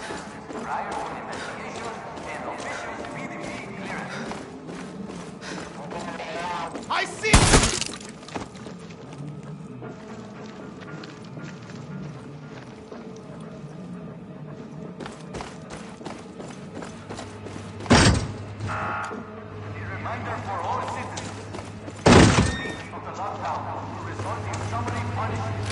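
Footsteps tap steadily on hard pavement.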